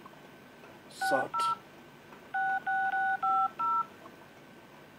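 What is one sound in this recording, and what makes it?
A phone beeps with short electronic tones.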